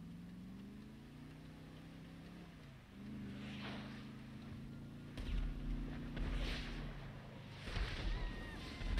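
A car engine hums steadily and revs as the car drives.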